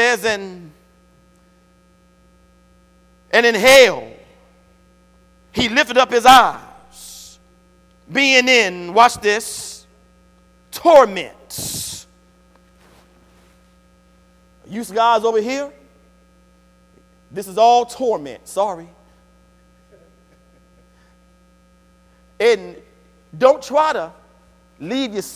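A man preaches with animation through a microphone in an echoing hall, pausing between phrases.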